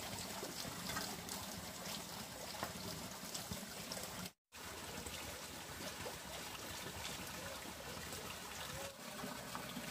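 Water trickles steadily from a pipe and splashes into a pond.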